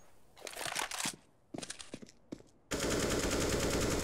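A rifle scope clicks as it zooms in.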